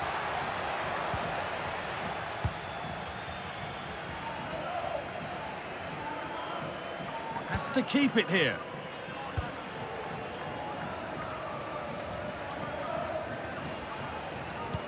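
A large crowd cheers and murmurs steadily in a stadium.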